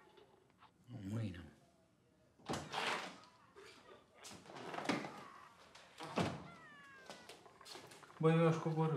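A second man answers casually.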